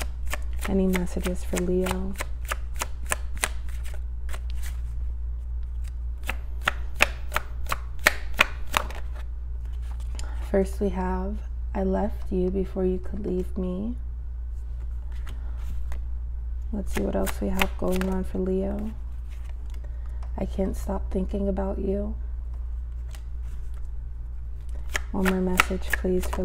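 Playing cards shuffle with quick, crisp flicks.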